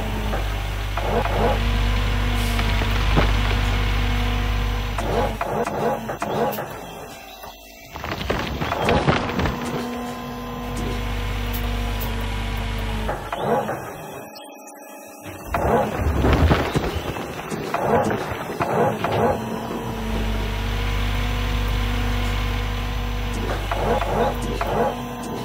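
Dirt and rocks rumble and scrape into a digger bucket.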